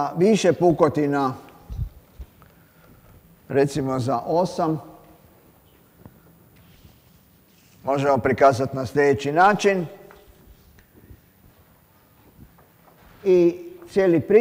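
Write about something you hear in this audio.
An elderly man lectures calmly, heard close through a microphone in a room with a slight echo.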